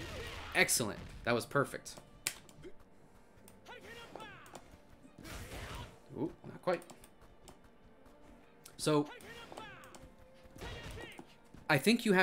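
Punches and kicks thud and smack in a fighting game.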